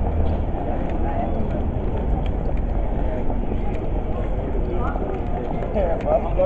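Footsteps and heels click on paving stones.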